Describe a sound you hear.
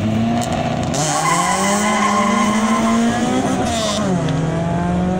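Two cars accelerate hard, engines climbing in pitch as they race away.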